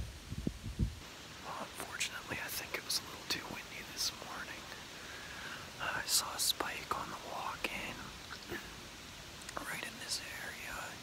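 A man speaks quietly and close by, in a low, hushed voice.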